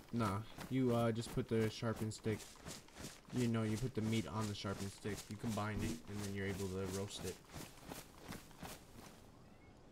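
Footsteps rustle through dry grass and leaves.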